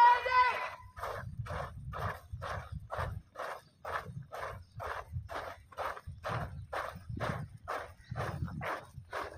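A group of children marches, feet stamping in a steady rhythm on dry ground.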